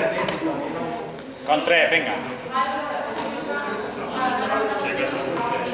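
Young men talk nearby in a large echoing hall.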